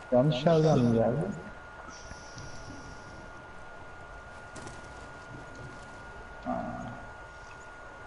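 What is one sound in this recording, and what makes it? A man speaks briefly and casually into a microphone.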